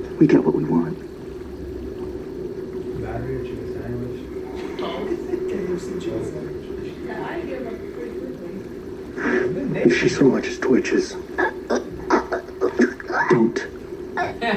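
Several adults talk quietly among themselves.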